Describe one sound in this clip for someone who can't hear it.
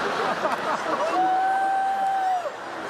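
An electric guitar holds a long sustained note.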